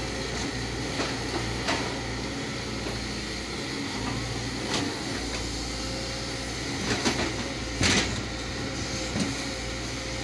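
An excavator bucket scrapes and knocks against soil and stones.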